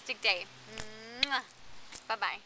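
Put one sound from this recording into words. A woman blows a kiss with a soft smack of her lips.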